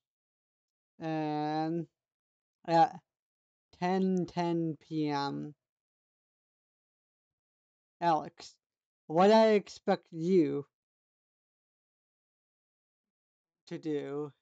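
A young man talks calmly and close up in bursts, with pauses between.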